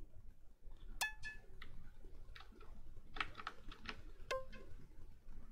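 Retro computer game beeps and bleeps play.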